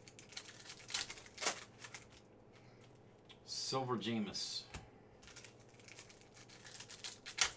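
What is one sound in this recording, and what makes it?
Trading cards and a foil wrapper rustle and crinkle between hands.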